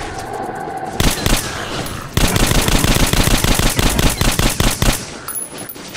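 A rifle fires rapid bursts of shots nearby.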